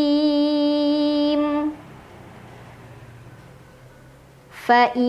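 A young woman chants in a long, held melodic voice close to a microphone.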